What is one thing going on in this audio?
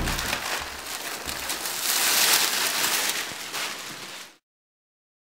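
A sheet of plastic cloth flaps and rustles.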